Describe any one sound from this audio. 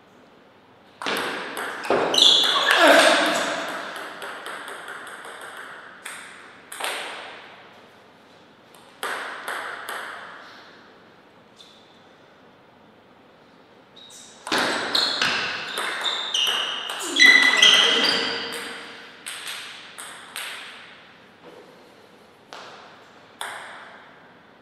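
A table tennis ball clicks back and forth off paddles and the table in quick rallies.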